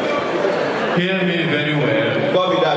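A young man talks with animation through a microphone over loudspeakers in a large hall.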